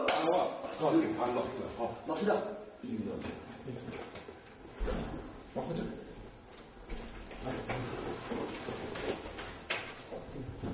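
Men scuffle and shuffle their feet.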